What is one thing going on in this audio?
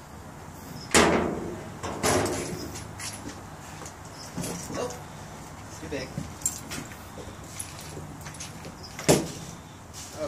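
A litter grabber knocks against a metal bin.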